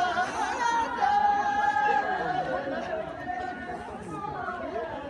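A group of men and women sing together outdoors.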